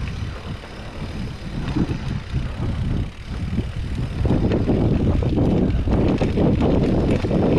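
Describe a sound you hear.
Bicycle tyres roll and bump over rough grass and dirt, getting louder on the rougher track.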